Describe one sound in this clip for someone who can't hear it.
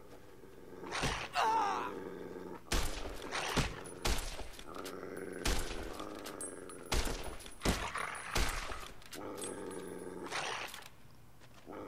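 Coyotes snarl and growl up close.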